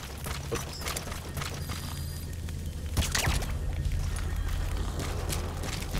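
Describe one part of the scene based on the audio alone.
A small fire crackles nearby.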